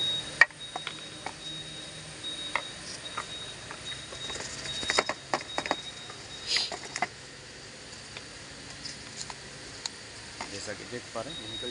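Plastic parts knock and rattle as they are handled.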